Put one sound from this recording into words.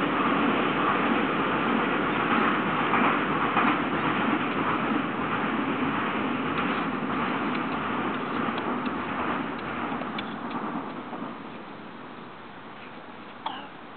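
A stick scrapes and digs in sand.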